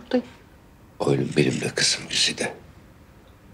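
An older man speaks in a low, stern voice, close by.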